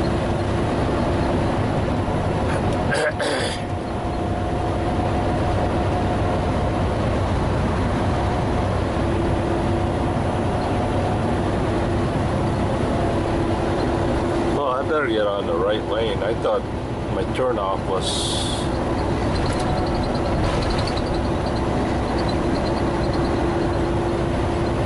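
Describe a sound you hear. A truck engine drones steadily from inside the cab.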